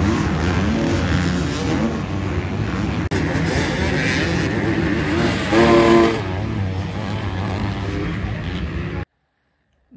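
Dirt bike engines whine and rev nearby.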